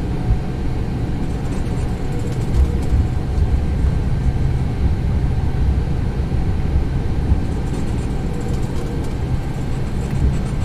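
Tyres rumble over a runway.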